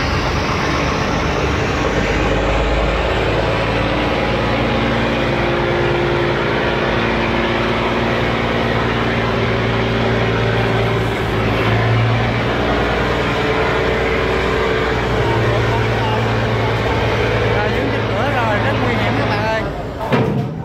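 A barge's diesel engine labours with a low, steady drone.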